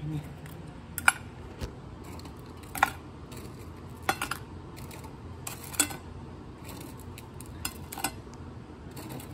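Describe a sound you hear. Crisp toast slices clatter lightly onto a ceramic plate.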